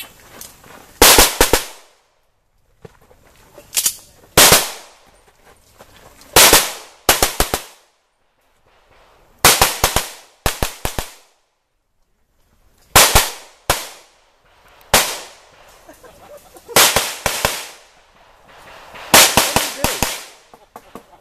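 Pistol shots ring out loudly outdoors in quick bursts, echoing briefly.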